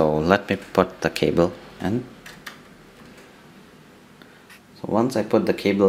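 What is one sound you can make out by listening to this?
A USB cable plug clicks into a laptop's socket.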